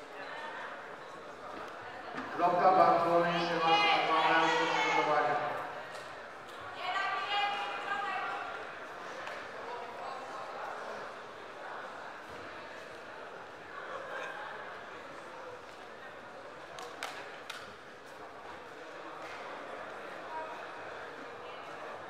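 Bodies shuffle and thump on a mat.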